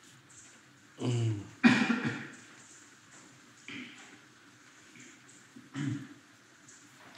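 A man coughs and clears his throat close to a microphone.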